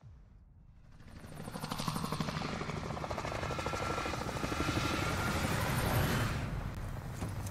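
Helicopter rotors thump loudly as they fly past.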